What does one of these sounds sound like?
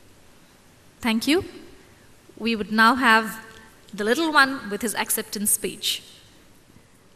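A woman speaks into a microphone over loudspeakers in a large hall.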